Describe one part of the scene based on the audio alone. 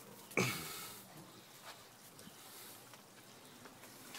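A puppy laps water from a bowl.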